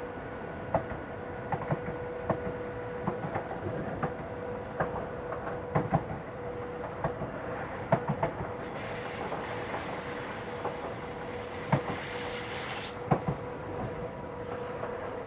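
Train wheels clack over rail joints and points.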